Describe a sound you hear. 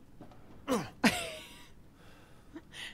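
A young woman laughs softly.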